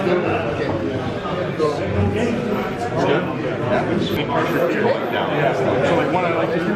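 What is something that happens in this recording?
Men talk close by.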